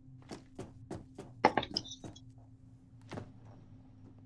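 Footsteps clang on a metal roof.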